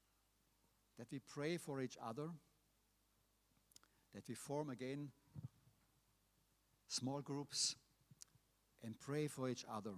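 A middle-aged man speaks calmly through a microphone, in short phrases with pauses.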